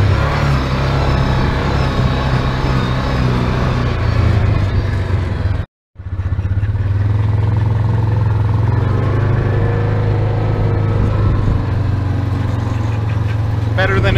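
An off-road vehicle's engine hums steadily.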